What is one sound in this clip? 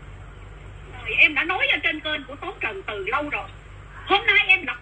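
An elderly woman speaks calmly close to the microphone.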